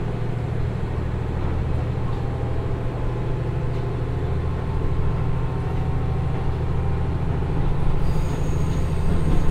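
A diesel train engine rumbles steadily as the train slowly picks up speed.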